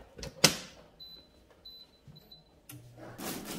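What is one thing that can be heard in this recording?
An appliance beeps as its buttons are pressed.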